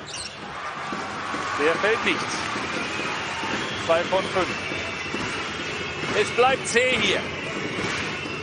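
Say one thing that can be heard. A crowd murmurs and cheers in a large indoor arena.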